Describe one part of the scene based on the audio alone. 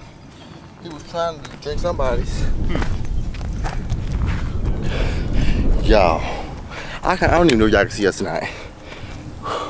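A young man talks close to the microphone.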